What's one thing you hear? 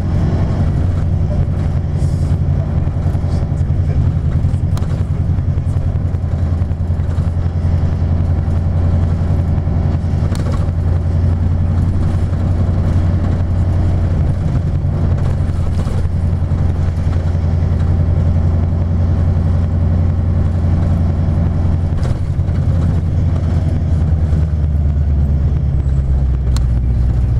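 Other cars pass close by on the road.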